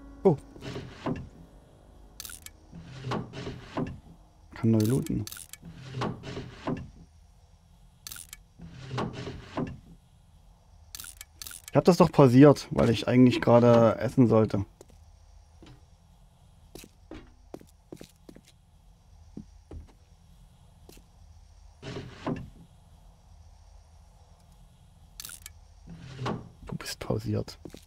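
A man talks casually and with animation into a close microphone.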